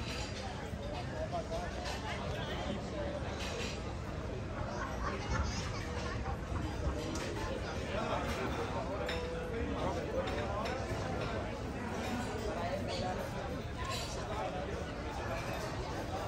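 A crowd of diners chatters and murmurs nearby.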